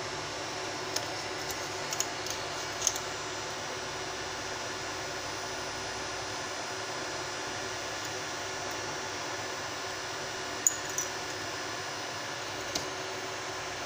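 A metal tool clicks and taps against a phone's plastic casing.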